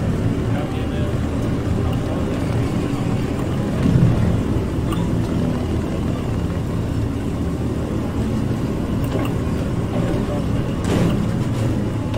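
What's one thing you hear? Tank tracks clank and rattle over the ground.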